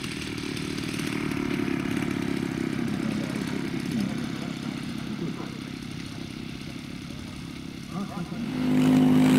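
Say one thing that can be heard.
A small model plane engine buzzes steadily as the plane taxis.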